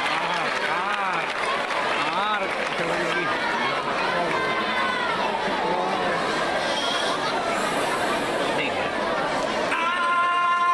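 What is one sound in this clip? A young woman sings into a microphone, heard over loudspeakers in a large echoing hall.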